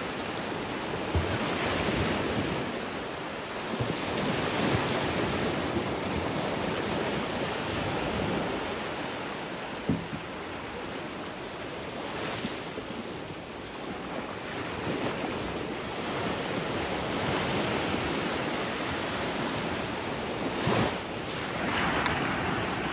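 Small waves wash and break onto a beach.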